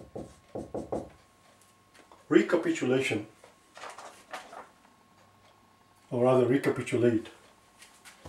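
A man speaks calmly and clearly nearby, in short bursts.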